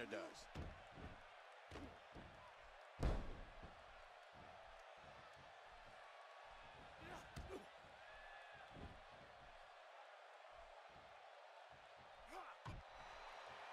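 Heavy thuds of bodies slam onto a wrestling mat.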